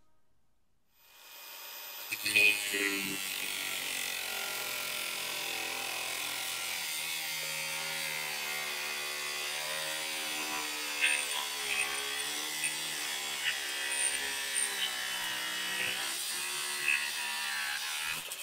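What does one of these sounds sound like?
An angle grinder whines steadily as it cuts through metal.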